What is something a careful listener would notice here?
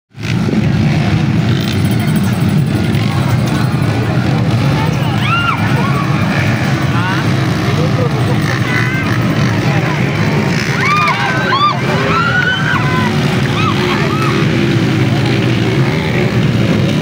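Dirt bike engines drone and rev in the distance.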